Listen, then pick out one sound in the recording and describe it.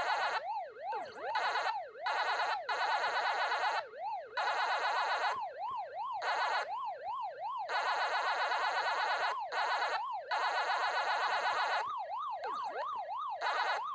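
An arcade game's siren wails in a steady loop.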